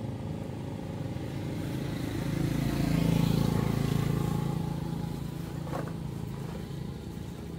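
A motorbike engine passes by on a road.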